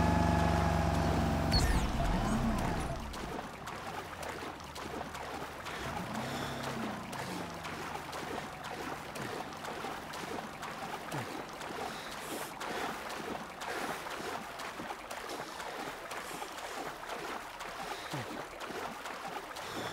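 Water splashes and laps steadily.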